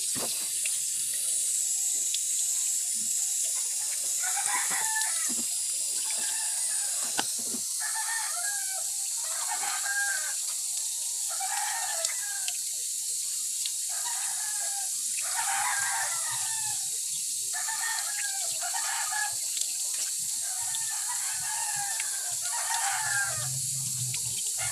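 Water runs steadily from a tap.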